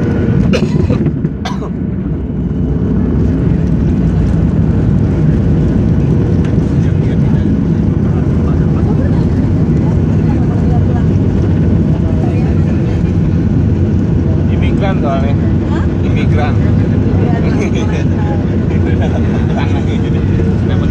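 Jet engines roar steadily inside an airplane cabin.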